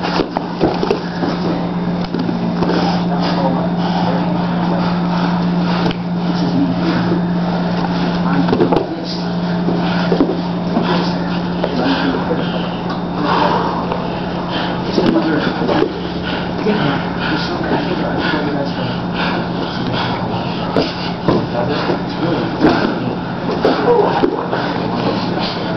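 Bodies scuff and thump on a padded mat.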